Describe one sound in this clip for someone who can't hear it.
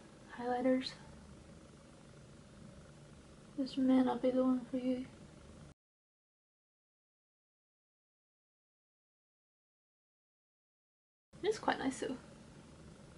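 A young woman speaks calmly and close up, in short bursts.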